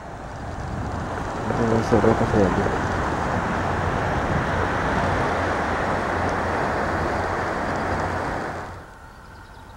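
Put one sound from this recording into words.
Waves wash against rocks below.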